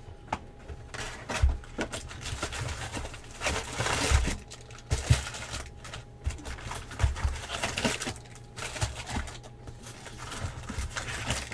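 A cardboard strip rips as it is pulled off a box.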